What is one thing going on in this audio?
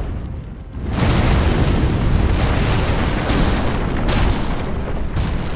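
Flames roar and crackle loudly.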